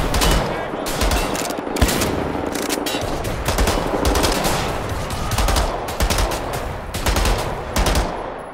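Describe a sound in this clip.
Gunshots crack repeatedly at close range.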